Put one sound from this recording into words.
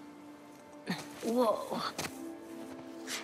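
A young girl grunts with effort.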